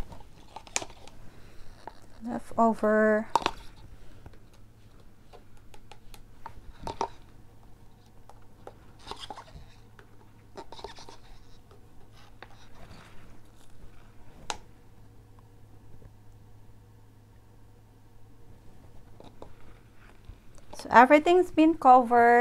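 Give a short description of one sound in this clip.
Plastic cups tap and clink against a table.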